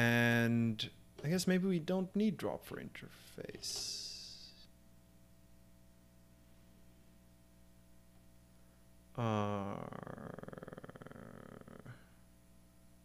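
A man speaks calmly and close to a microphone, pausing between phrases.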